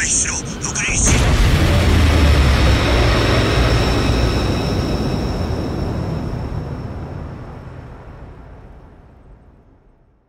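A huge explosion booms and roars, then slowly fades away.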